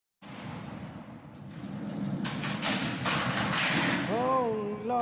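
A man shouts loudly from behind glass.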